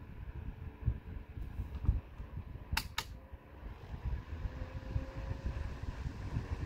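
A small electric fan whirs softly.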